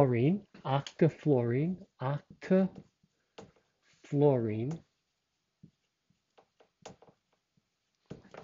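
A man speaks clearly and calmly close by, as if lecturing.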